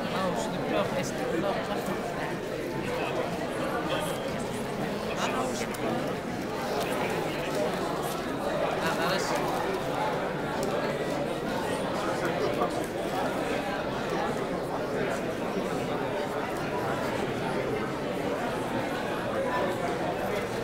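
Paper pages rustle as people leaf through booklets.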